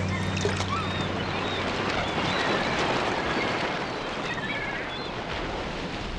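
Waves wash over rocks.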